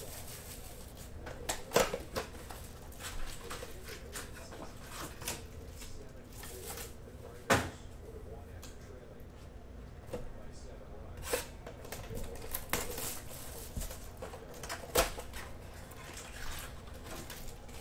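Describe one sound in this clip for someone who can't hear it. Plastic wrap crinkles and rustles as it is handled.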